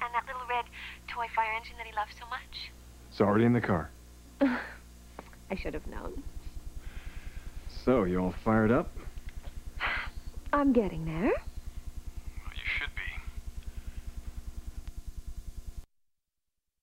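A man talks calmly on the phone.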